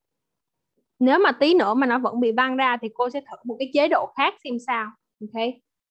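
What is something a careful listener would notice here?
A child speaks with animation over an online call.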